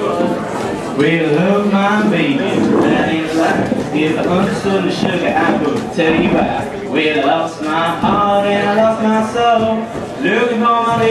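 A young man sings into a microphone over the music.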